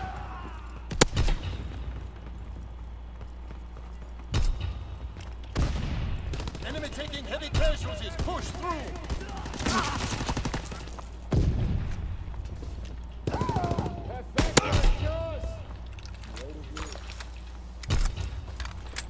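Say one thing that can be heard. Rifle shots crack loudly, one at a time.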